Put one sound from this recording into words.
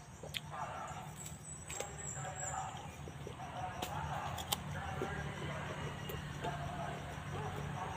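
A man bites and crunches on firm guava.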